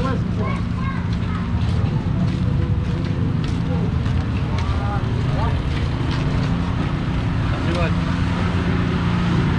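A crowd chatters in an outdoor street market.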